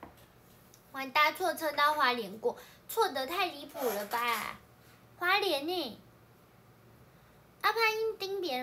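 A young woman speaks close by in a high, lively voice.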